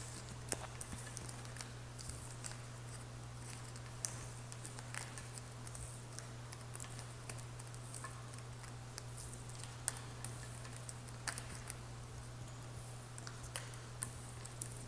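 Cards tap and slide on a hard stone surface.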